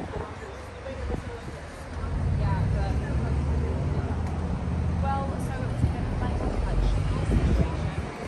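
Women chat at outdoor tables nearby.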